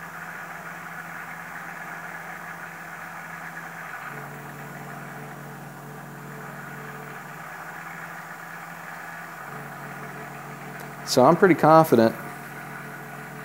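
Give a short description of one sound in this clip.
A motor hums steadily, shifting pitch now and then.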